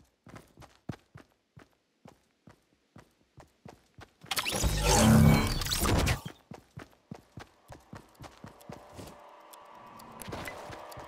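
Footsteps patter quickly on the ground.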